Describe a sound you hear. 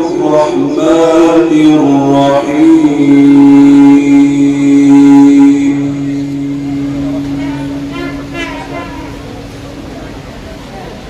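A man chants in a long, melodic voice through a microphone and loudspeakers, in an echoing hall.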